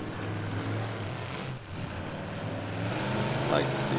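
Metal crunches as cars collide.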